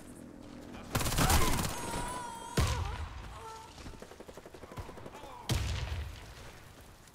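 Rifle shots fire in loud, short bursts.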